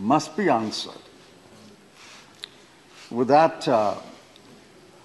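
An elderly man speaks with emphasis through a microphone, in short bursts.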